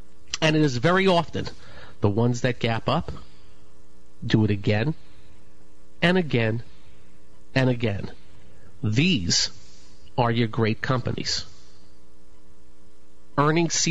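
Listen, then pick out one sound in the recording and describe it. A man speaks calmly through a microphone, in short phrases with pauses.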